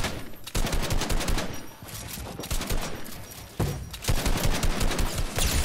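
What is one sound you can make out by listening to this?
Rapid gunshots and building clatter burst from a video game.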